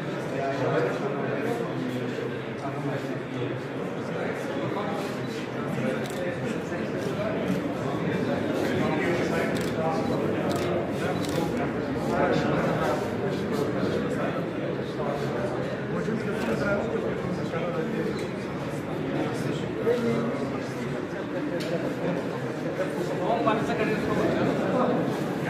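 A group of people murmur and talk in the background.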